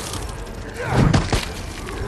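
A bat strikes a zombie with heavy thuds.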